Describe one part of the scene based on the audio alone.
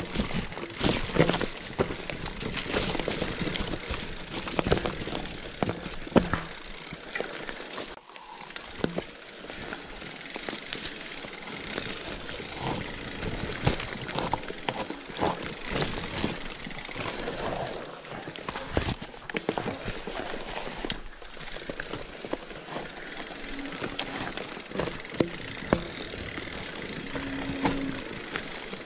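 Bicycle tyres crunch and rattle over a rough dirt trail.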